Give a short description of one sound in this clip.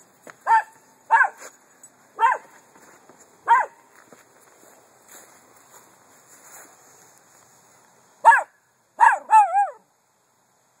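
A small dog barks sharply, close by.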